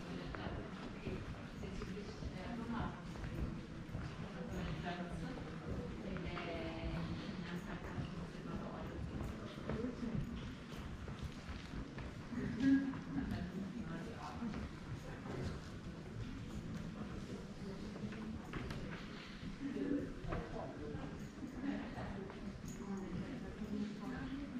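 Adult visitors murmur quietly in a large echoing room.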